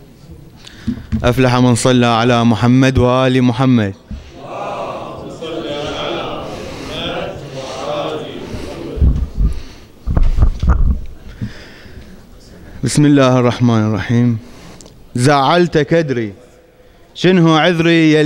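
A young man sings loudly into a microphone in an echoing hall.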